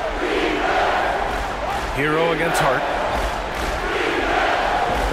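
A large crowd murmurs and cheers steadily in an echoing arena.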